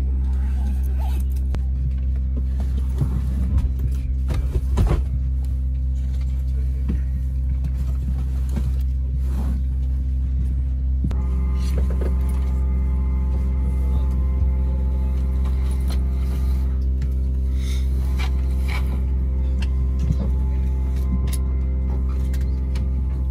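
A jet engine hums steadily and loudly inside an aircraft cabin.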